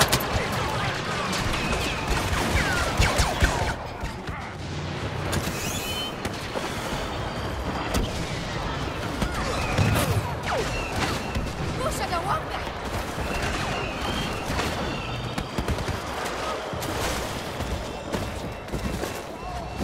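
Laser blasters fire in sharp, rapid bursts.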